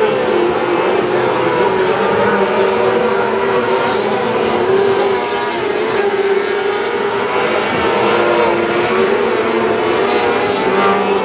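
Race car engines roar loudly, rising and falling in pitch as they circle.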